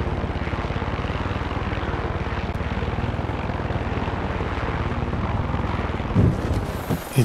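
A helicopter engine and rotor drone loudly and steadily.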